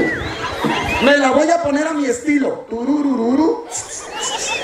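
A young man sings loudly into a microphone, heard through a loudspeaker.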